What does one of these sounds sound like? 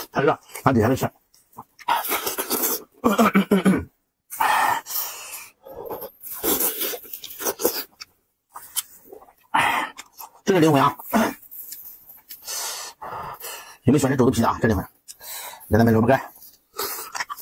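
A man chews and slurps food noisily.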